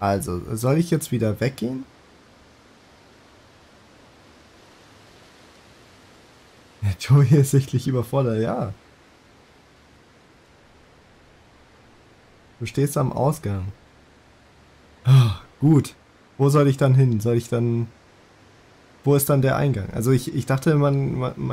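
A young man talks into a close microphone with animation, in short bursts with pauses.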